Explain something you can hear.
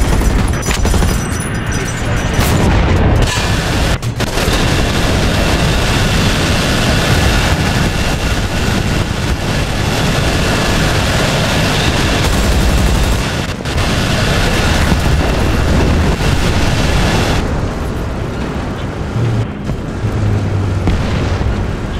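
A tank engine rumbles and roars steadily.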